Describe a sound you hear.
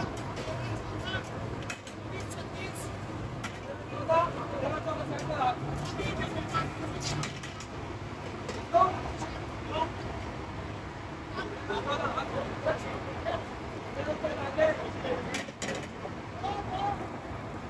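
Metal grill racks clink and rattle.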